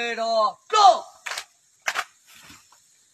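Rifles fire sharp shots in a volley.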